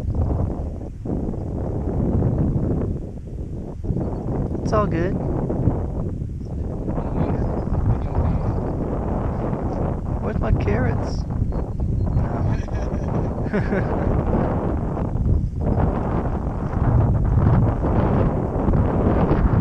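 Wind blows hard across open ground.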